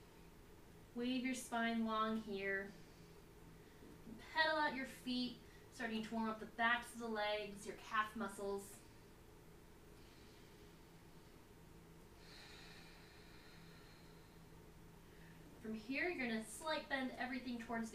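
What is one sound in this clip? A young woman speaks calmly and instructively, close by.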